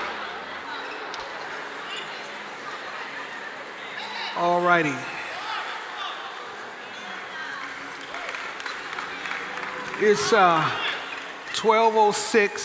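A large crowd murmurs and talks in an echoing hall.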